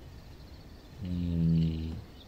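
A man makes a short, drawn-out vocal sound close to a microphone.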